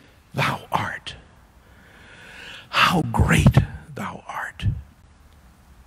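An older man speaks calmly into a microphone in a large echoing room.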